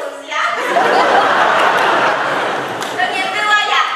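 A young woman laughs loudly.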